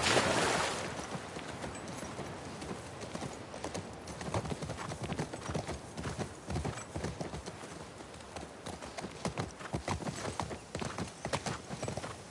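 A horse's hooves clop on the ground.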